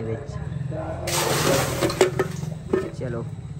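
Water splashes as it is poured from a bucket.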